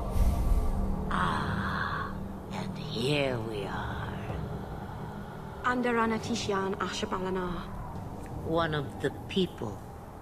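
A woman speaks in a low, cold voice.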